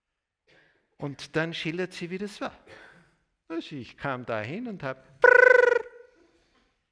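An elderly man speaks with animation through a microphone.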